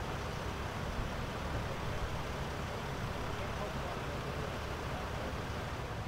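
A vehicle engine idles nearby with a low steady hum.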